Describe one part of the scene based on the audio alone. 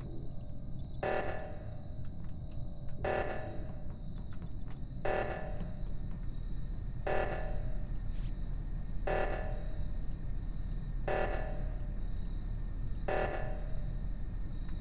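A game alarm blares in short bursts about every two seconds.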